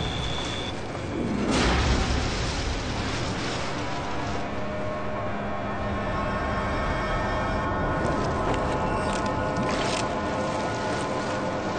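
Water sloshes as a man wades through it.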